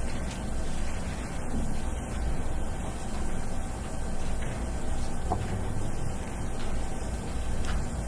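People shuffle slowly across the floor.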